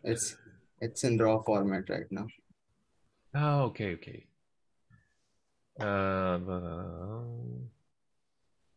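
A middle-aged man speaks over an online call.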